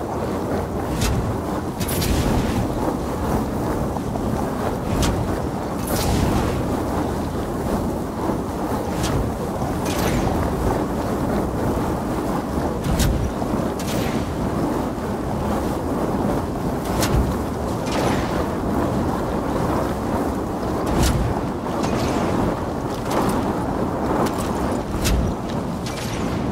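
Crystal shards crack and shatter in sharp bursts.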